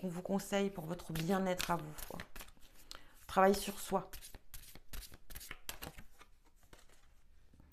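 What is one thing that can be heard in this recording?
Playing cards rustle and slap together as they are shuffled by hand.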